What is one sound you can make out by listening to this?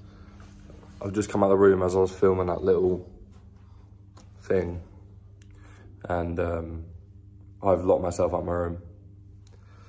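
A young man talks calmly and close by, in short bursts with pauses.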